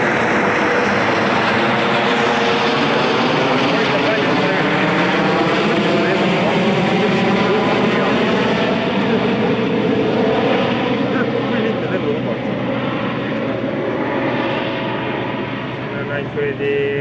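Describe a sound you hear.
Car engines roar and rev hard as they race past.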